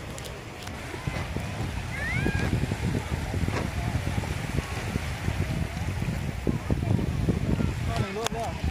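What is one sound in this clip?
Small waves wash gently onto a shallow shore.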